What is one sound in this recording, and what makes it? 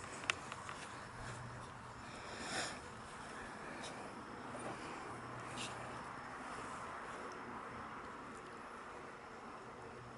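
A small dog patters about on grass.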